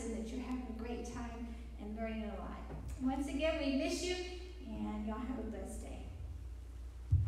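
A woman speaks into a microphone through loudspeakers in an echoing room.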